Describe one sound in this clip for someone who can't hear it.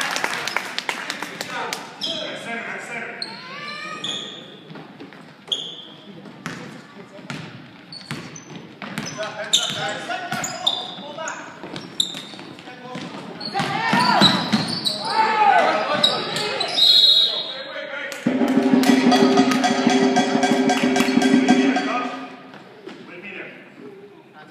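A basketball bounces on a hard floor, echoing.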